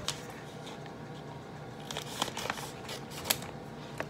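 Scissors snip through a plastic packet.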